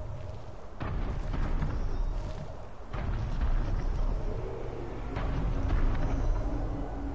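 Leaves rustle as someone pushes through dense foliage.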